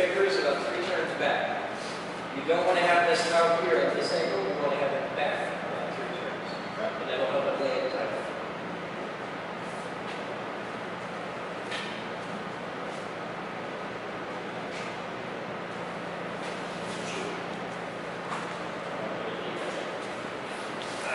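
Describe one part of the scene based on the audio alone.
A steady low hum of machinery runs throughout.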